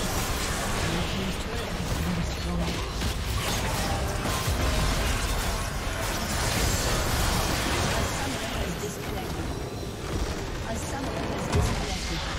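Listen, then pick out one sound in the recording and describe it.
Game spell effects crackle and whoosh in a fierce battle.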